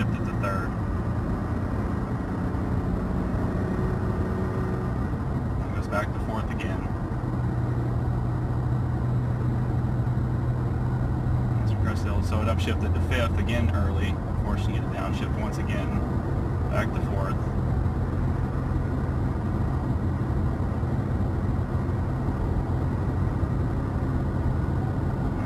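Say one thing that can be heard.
Tyres roll on a paved road with a steady rumble.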